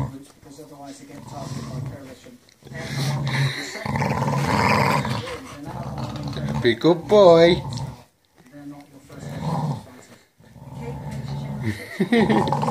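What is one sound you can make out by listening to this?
Dogs growl and snarl playfully up close.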